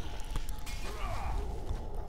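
A fiery blast bursts with a whoosh.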